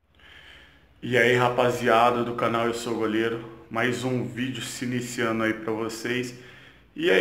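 A man talks with animation close to the microphone.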